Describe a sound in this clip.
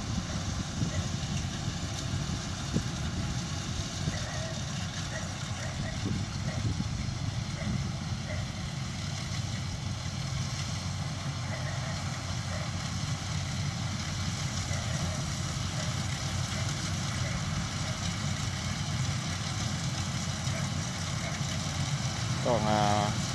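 Dry rice stalks rustle and crunch under a harvester's cutter.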